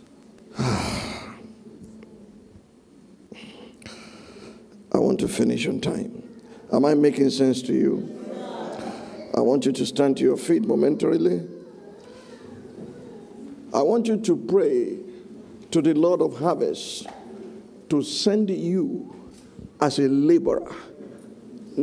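An older man speaks with animation through a microphone in a large echoing hall.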